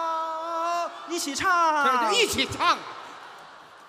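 A man shouts with excitement through a microphone.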